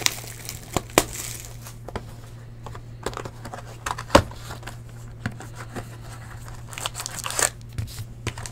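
Card boxes tap and knock against a table.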